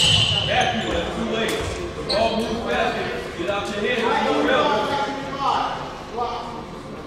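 Young players shout across a large echoing gym.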